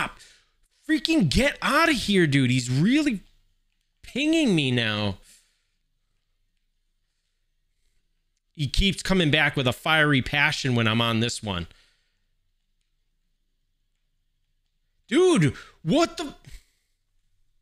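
A man talks with animation close to a microphone, in bursts with pauses.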